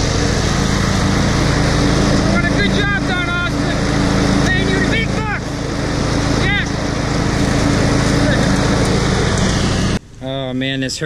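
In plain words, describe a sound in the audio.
A small engine runs and rumbles steadily up close, outdoors in wind.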